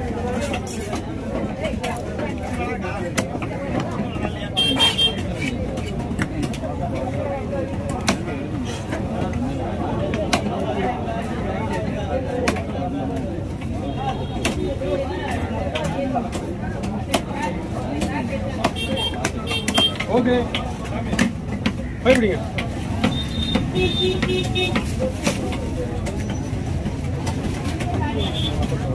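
A cleaver chops through fish on a wooden block with sharp knocks.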